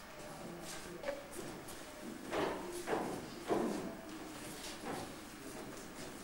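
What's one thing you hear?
Footsteps climb wooden stairs in an echoing room.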